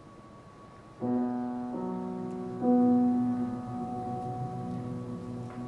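A piano plays slow, sustained chords in a large hall.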